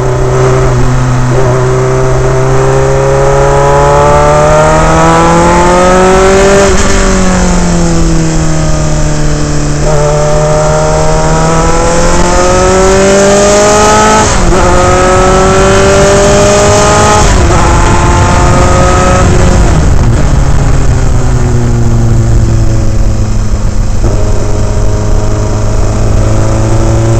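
A racing car engine roars loudly up close, rising in pitch as it revs and dropping sharply at each gear change.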